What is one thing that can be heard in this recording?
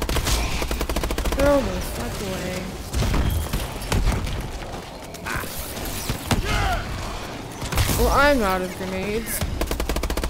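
Monsters groan and shriek.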